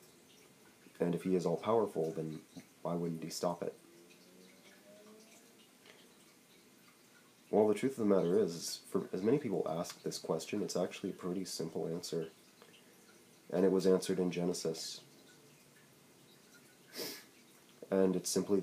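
A young man talks casually, close to the microphone, in short bursts with pauses.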